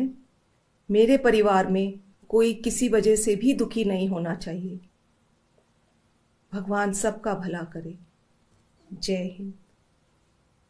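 A middle-aged woman speaks calmly into a microphone, in short phrases with pauses.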